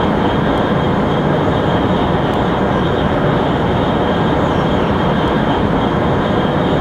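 A high-speed train rumbles steadily along the rails.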